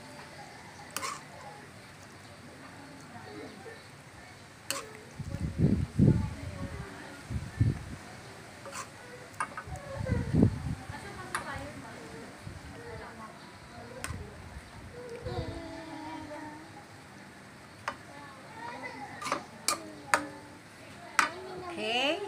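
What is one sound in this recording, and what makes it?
A metal spoon clinks against a glass dish.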